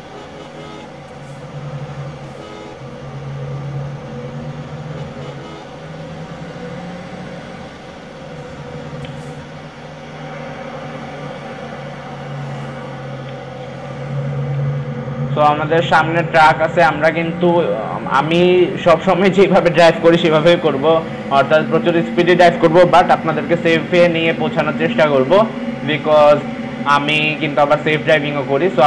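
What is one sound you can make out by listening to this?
A large bus engine hums steadily as the bus drives along.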